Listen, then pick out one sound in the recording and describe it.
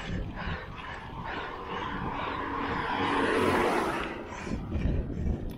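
A car approaches and passes by close.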